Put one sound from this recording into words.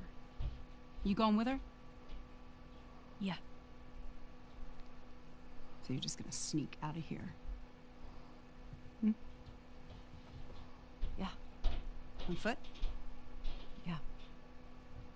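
A young woman answers briefly.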